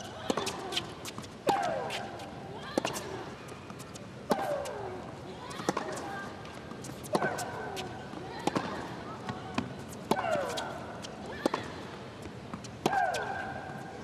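A tennis ball is struck back and forth with sharp pops of the racket.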